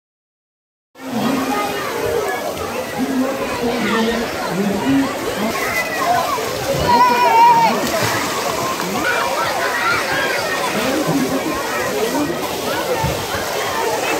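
Children shout and chatter in a busy outdoor pool.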